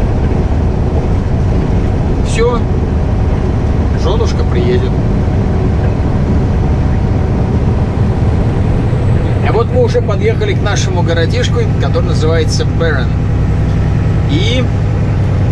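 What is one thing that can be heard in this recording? A truck engine rumbles steadily inside the cab.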